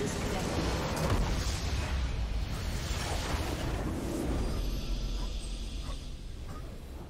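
A huge explosion booms and rumbles in a game.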